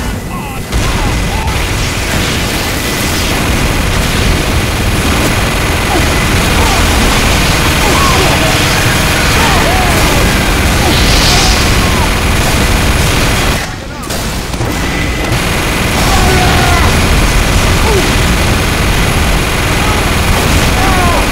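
A heavy rotary gun fires in a loud, rattling roar.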